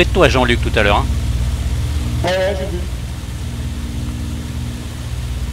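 A propeller engine drones steadily and low.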